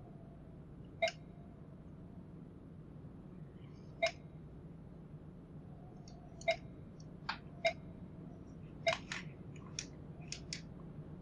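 A short electronic blip sounds several times.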